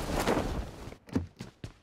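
Footsteps tap on hard ground.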